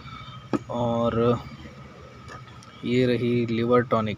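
A glass bottle is lifted off a wooden table with a light knock.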